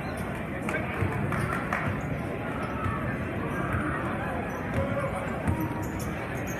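A basketball bounces on a hard wooden floor.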